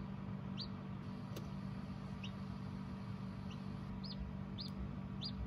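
A chick peeps faintly from inside a hatching egg.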